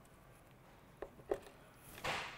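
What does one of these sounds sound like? Pliers click against a wire.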